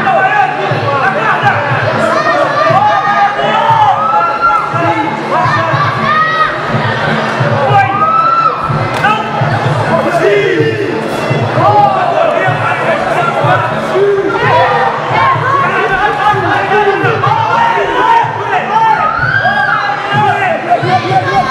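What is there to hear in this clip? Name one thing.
A crowd shouts and cheers loudly outdoors.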